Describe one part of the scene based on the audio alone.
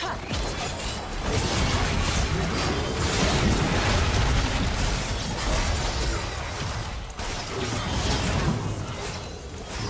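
Spell effects crash and whoosh in a loud, busy fight.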